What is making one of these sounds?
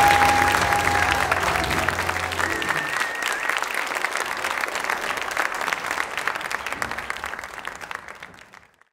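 A large crowd applauds in an echoing hall, then the clapping fades away.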